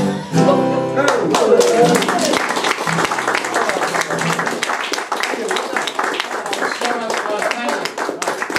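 Several acoustic guitars strum together in a lively rhythm.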